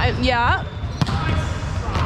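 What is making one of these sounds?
A volleyball is hit with a slap that echoes through a large hall.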